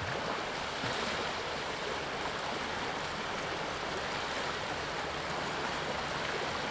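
Water rushes steadily close by.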